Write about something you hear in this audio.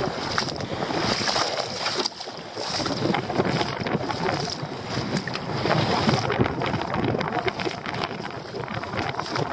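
Shallow water splashes and sloshes close by.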